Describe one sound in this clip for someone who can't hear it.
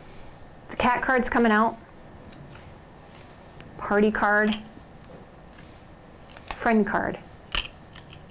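Playing cards are laid down on a table with soft taps.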